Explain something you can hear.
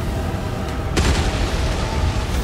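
Stone shatters with a heavy booming crash.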